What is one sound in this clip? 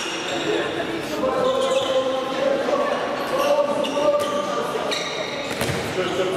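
Sneakers squeak on a hard court floor in an echoing sports hall.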